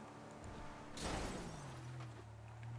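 Tyres crunch and skid over dry dirt.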